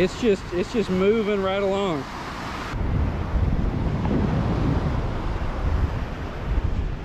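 Waves break and wash up onto a sandy shore.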